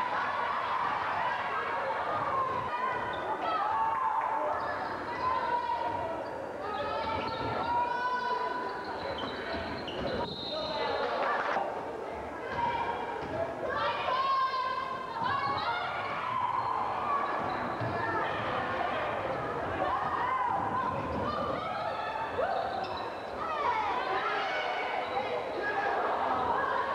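Sneakers squeak on a wooden court.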